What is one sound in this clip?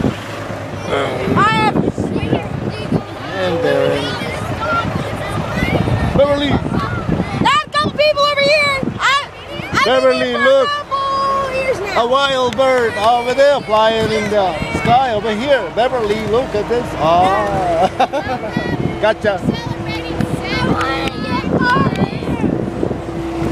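Young girls chatter and shout excitedly close by.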